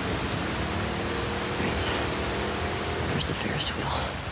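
A small outboard motor hums steadily as a boat moves across water.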